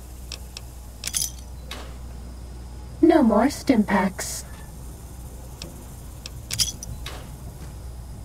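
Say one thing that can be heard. A metal locker door creaks open with a clank.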